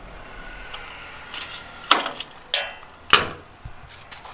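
A fuel cap clicks as it is unscrewed.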